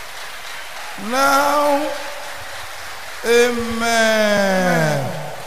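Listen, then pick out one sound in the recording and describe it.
A man speaks loudly and with animation into a microphone.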